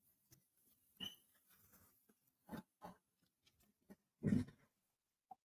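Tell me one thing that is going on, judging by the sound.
Small pieces of glass tap softly as a hand presses them down.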